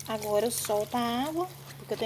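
Water pours from a tap onto wet laundry.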